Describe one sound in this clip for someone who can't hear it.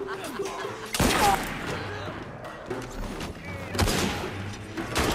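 Fists land in a brawl with heavy thuds.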